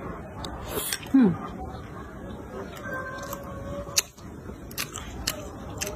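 A young woman chews and smacks her lips close by.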